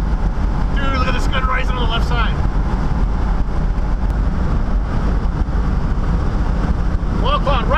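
A car engine rumbles and tyres roar steadily on the road.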